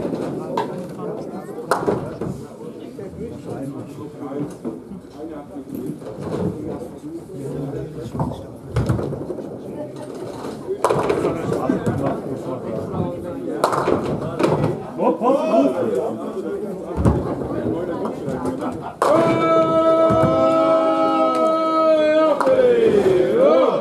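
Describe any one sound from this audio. Heavy balls thud and roll down lanes in an echoing hall.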